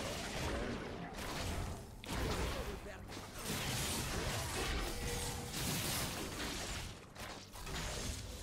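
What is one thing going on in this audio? Magic spells whoosh and crackle during a battle.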